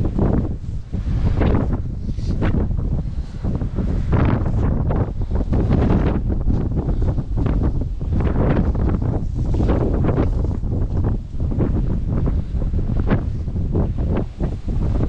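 Dry grass rustles and crunches close by.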